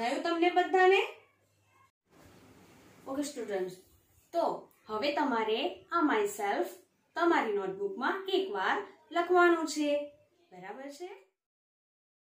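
A young woman speaks clearly and with animation close to a microphone.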